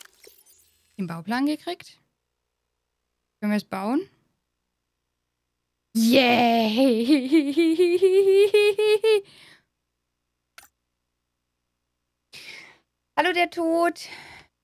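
A young woman talks with animation into a microphone, in short bursts.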